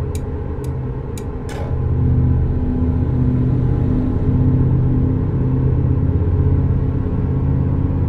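A truck rumbles past close by.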